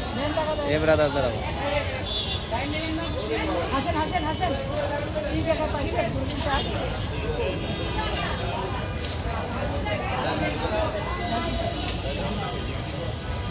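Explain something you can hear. Several adults talk over one another close by.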